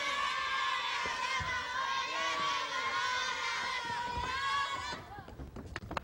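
A choir of men and women sings loudly in a large hall.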